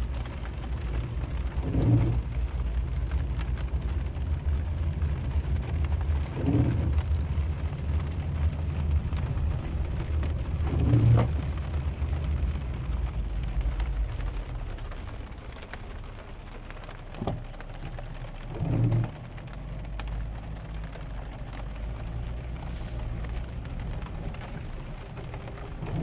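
A vehicle engine rumbles steadily while driving slowly.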